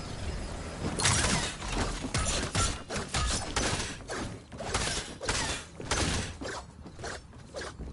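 A pickaxe strikes wood in quick, repeated blows.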